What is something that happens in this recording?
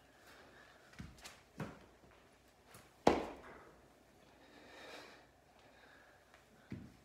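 Feet and hands thump on a padded floor.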